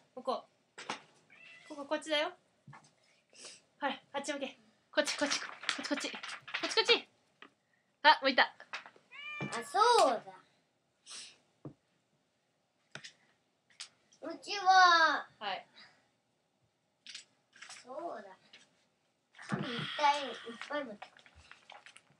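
A young boy talks in a high voice nearby.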